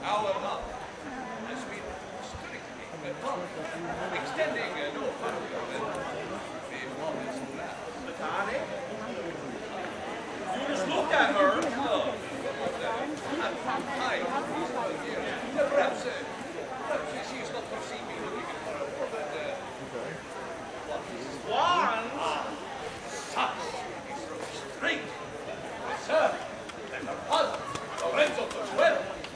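A man speaks loudly and theatrically, heard from a distance outdoors.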